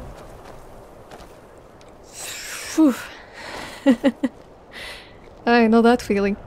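Footsteps crunch on snowy stone.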